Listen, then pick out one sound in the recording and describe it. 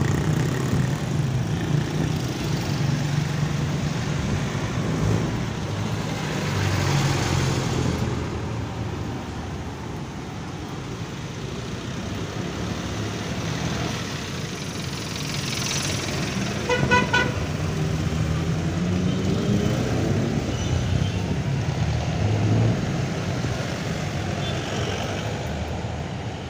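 A small motor engine rumbles steadily close by.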